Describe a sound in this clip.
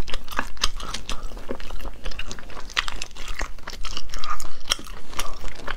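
Shells crack and squelch as fingers pull snails apart.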